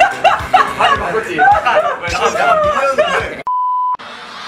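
A young man laughs heartily close by.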